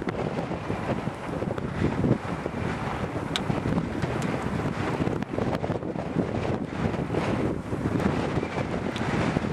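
Strong wind gusts and roars outdoors, buffeting loudly.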